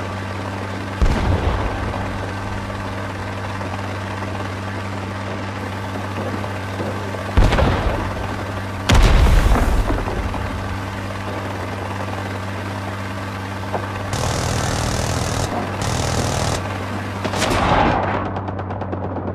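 Explosions boom in bursts below.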